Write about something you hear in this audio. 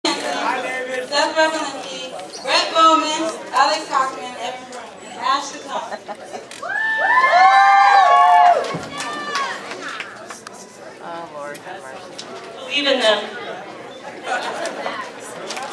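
A young woman speaks expressively in an echoing hall.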